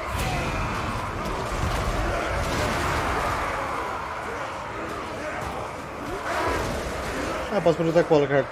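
A battle crowd roars and clashes in a dense din.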